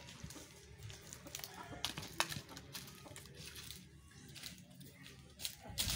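Footsteps crunch on dry ground and leaves.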